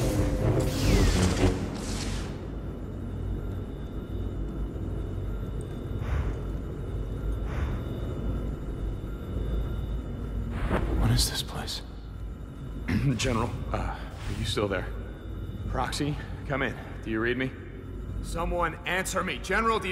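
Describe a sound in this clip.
A lightsaber hums and whooshes as it swings.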